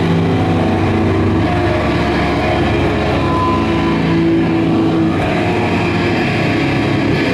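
Electric guitars play loudly through amplifiers.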